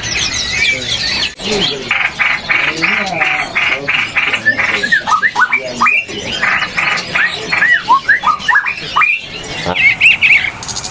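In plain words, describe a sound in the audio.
Caged songbirds chirp and whistle loudly close by.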